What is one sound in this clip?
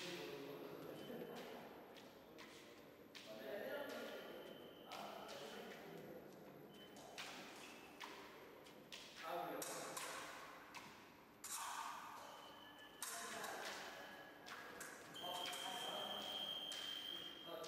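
Fencing blades clash and click.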